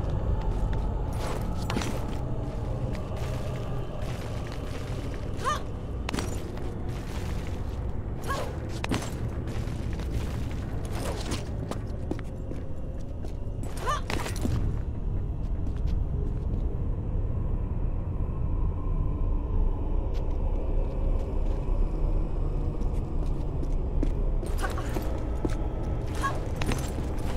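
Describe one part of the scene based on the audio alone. Hands grip and scrape on stone ledges.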